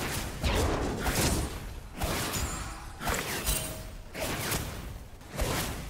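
Game sound effects of weapons striking and spells bursting come in quick, loud bursts.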